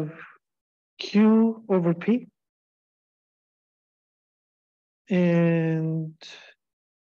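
A man speaks calmly into a microphone, heard as if over an online call.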